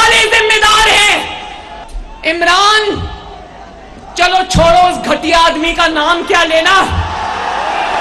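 A young woman speaks forcefully into a microphone over loudspeakers.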